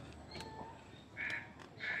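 A knife blade cuts into a plant stem.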